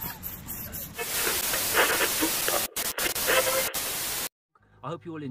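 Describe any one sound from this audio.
Static hisses loudly and steadily.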